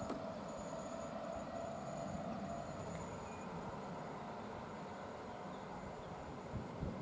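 An electric train approaches slowly from a distance with a low rumble and a steady hum.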